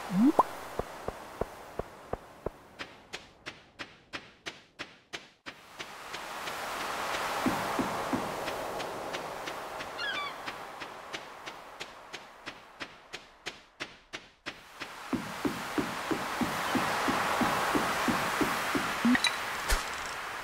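Footsteps crunch quickly and steadily across sand and wooden boards.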